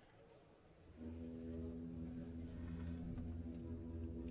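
A wind band begins to play a soft, steady chord.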